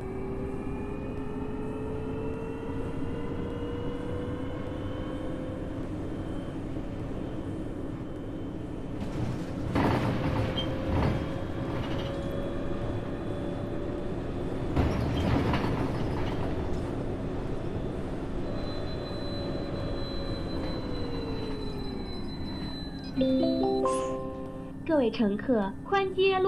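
A bus engine hums steadily, its pitch rising slowly as the bus picks up speed and then falling as it slows.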